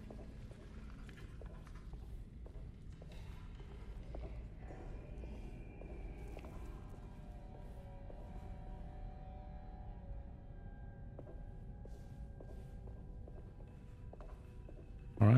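Footsteps tread slowly on a stone floor.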